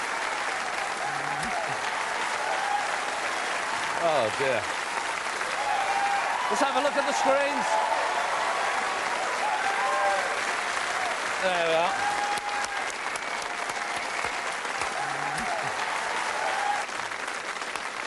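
Hands clap in steady applause.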